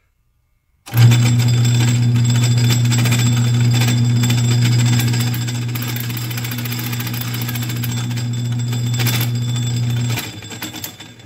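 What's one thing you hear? A cutting tool scrapes against spinning metal.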